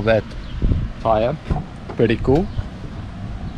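A young man speaks briefly and casually, close by.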